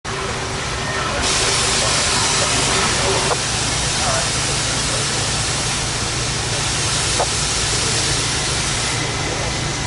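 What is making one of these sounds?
A steam locomotive's engine rumbles low and steady.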